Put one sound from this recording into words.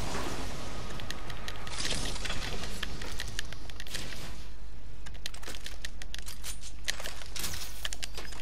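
Quick footsteps clatter on a metal floor.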